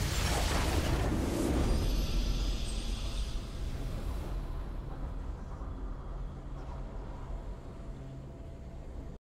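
A triumphant fanfare swells and slowly fades.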